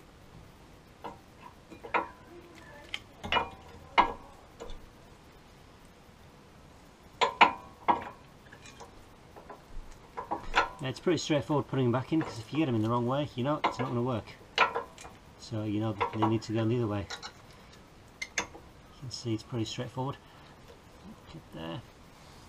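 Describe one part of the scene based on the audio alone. Metal parts clink and knock as a brake caliper is worked on by hand.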